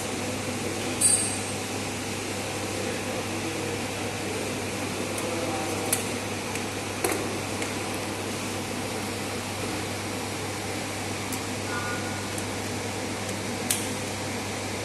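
A test clip snaps onto a metal terminal with a sharp click.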